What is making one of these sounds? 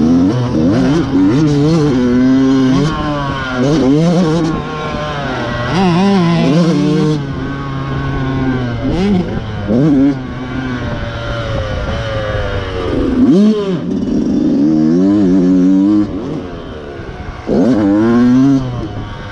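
A dirt bike engine revs up and down loudly, close by.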